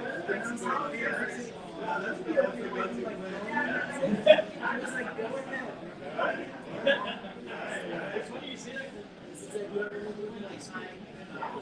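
Several men and women talk casually over one another nearby.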